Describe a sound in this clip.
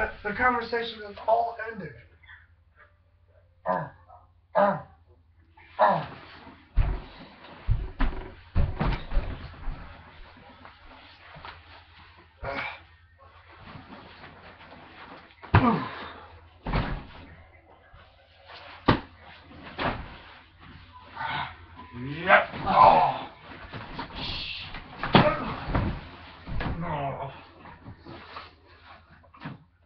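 Bodies thump onto a mattress.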